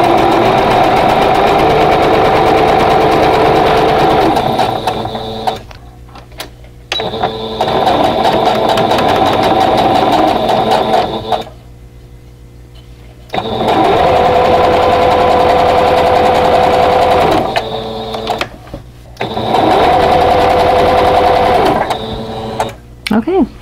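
A sewing machine hums and stitches rapidly in bursts.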